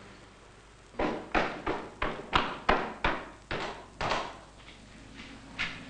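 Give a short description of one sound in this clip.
Footsteps climb a wooden staircase.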